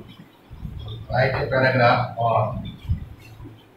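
A middle-aged man speaks calmly nearby.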